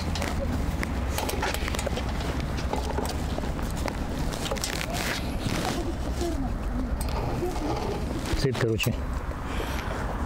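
Bicycle tyres roll over smooth pavement.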